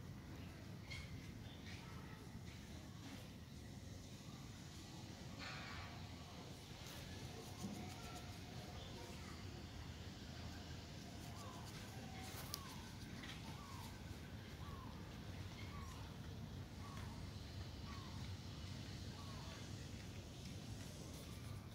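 A brush strokes softly through a dog's fur.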